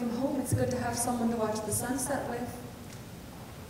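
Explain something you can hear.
A man speaks clearly in a large room.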